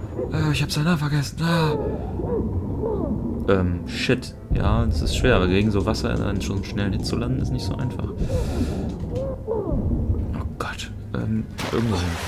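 Bubbles gurgle and rush up through water.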